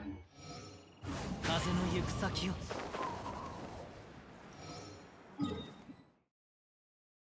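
A bright magical shimmer swells and rings out.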